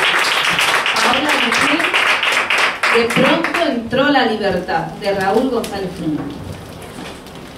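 A woman speaks into a microphone, heard through loudspeakers.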